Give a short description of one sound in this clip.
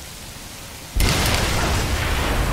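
A vehicle explodes with a loud boom.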